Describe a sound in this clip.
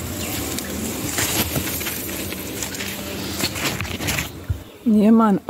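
Leaves rustle as they brush together.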